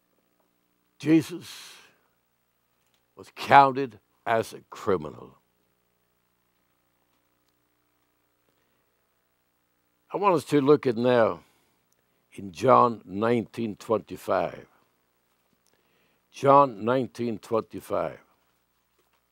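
An elderly man speaks slowly and solemnly into a microphone, with long pauses.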